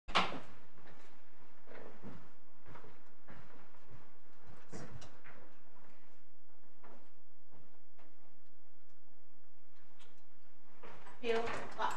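Footsteps and shuffling sound as people rise and move about in a room.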